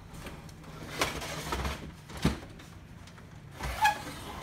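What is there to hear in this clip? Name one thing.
Plastic and metal parts knock and clatter as a man handles a printer.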